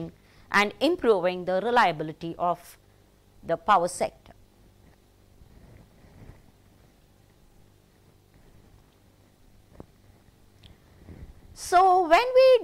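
A middle-aged woman speaks calmly into a close microphone, with pauses.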